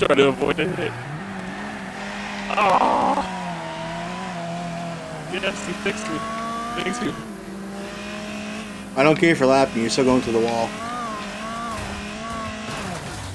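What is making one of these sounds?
A racing car engine hums steadily, rising and falling in pitch as the car speeds around the track.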